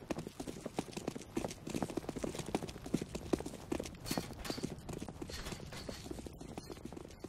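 Quick footsteps patter on hard pavement.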